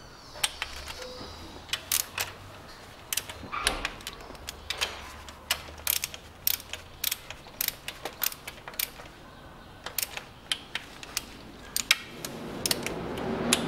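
A ratchet wrench clicks in quick bursts.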